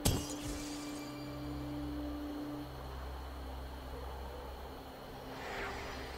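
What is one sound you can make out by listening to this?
A magical portal hums.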